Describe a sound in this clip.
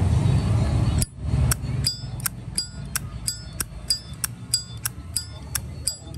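A metal lighter lid snaps open and shut over and over with crisp clicks.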